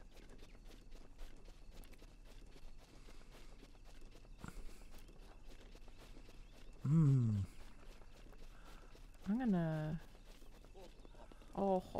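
Footsteps swish softly through grass.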